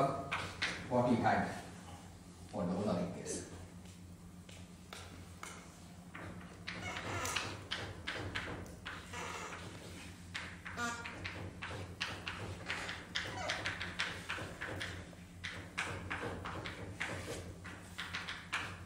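A cloth rubs and squeaks across a chalkboard in quick strokes.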